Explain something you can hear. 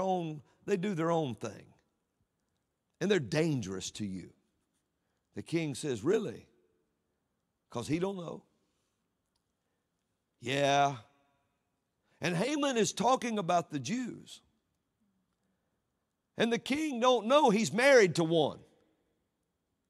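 A man speaks into a microphone in a measured, emphatic way, with pauses between phrases.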